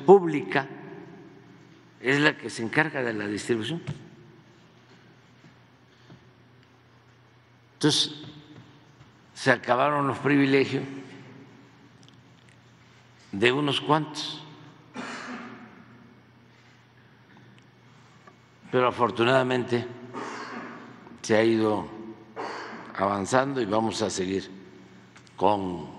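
An elderly man speaks calmly through a microphone, with pauses between phrases.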